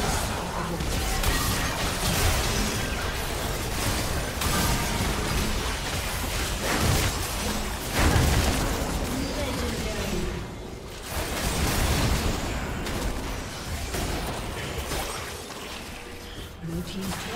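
Game weapons clash and strike again and again.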